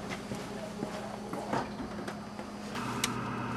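A refrigerator door is pulled open with a soft suction pop.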